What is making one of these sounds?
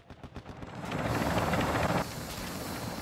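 A helicopter's rotor thumps loudly close by.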